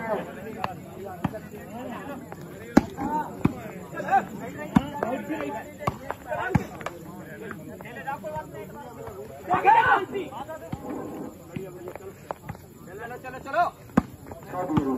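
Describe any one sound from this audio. Young men shout and call out outdoors during play.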